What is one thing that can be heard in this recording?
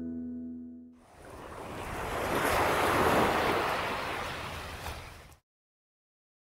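Small waves wash onto a beach and hiss as they draw back.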